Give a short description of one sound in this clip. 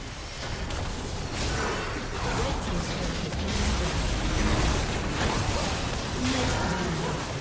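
Magic blasts and impacts crackle and boom in a busy battle.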